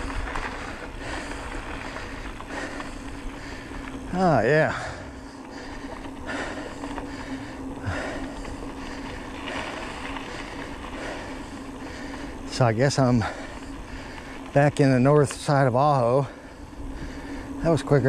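Bicycle tyres crunch and rumble over a gravel road.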